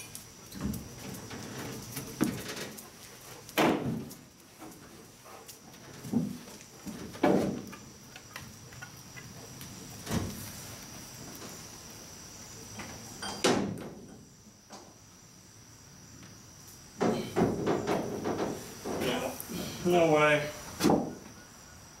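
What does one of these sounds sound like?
Heavy footsteps thud and clang on a metal truck bed.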